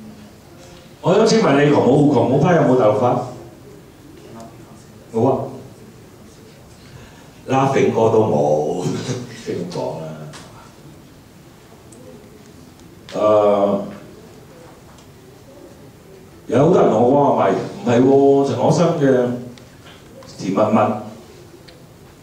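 A middle-aged man speaks with animation into a microphone, heard through a loudspeaker in an echoing room.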